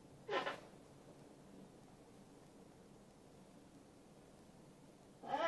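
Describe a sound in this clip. A blanket rustles softly as it is tucked in.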